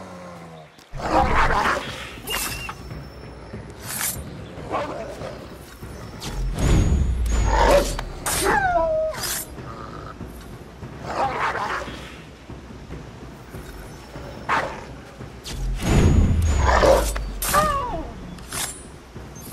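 A wolf snarls and yelps in a struggle.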